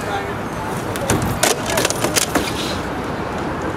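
A metal folding table clatters as it is dragged and folded.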